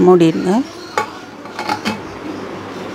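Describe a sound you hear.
A metal lid clanks onto a metal pot.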